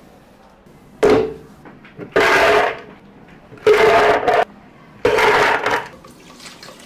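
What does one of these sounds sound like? Ice cubes clatter loudly into a plastic blender jug.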